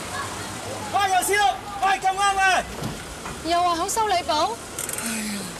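A young man shouts loudly and angrily nearby.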